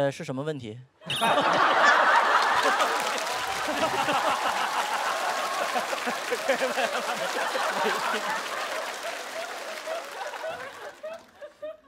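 An audience claps loudly.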